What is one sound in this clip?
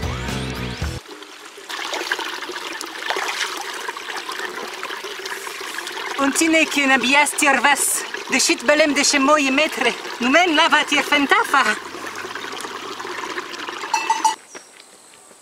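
Water trickles and splashes in a small stream close by.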